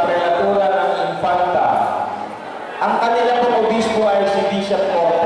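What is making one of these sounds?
A man sings through a microphone and loudspeakers in an echoing hall.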